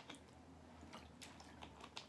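A young woman gulps a drink from a plastic bottle.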